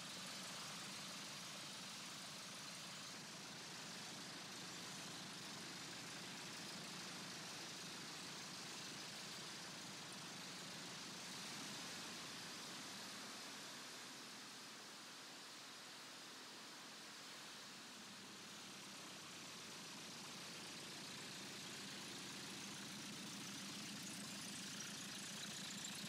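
A small propeller aircraft engine drones steadily nearby.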